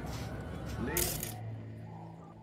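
A digital interface gives a short electronic burst as a scan opens.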